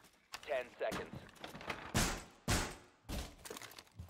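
Wooden planks thud as a barricade is put up.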